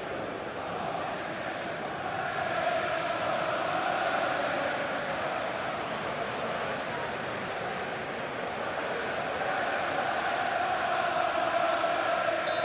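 A large stadium crowd sings and chants loudly.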